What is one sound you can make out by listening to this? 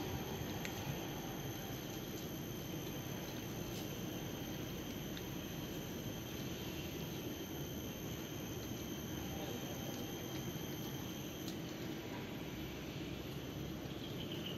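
Water splashes and laps softly.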